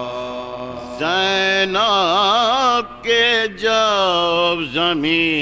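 A man chants loudly through a loudspeaker.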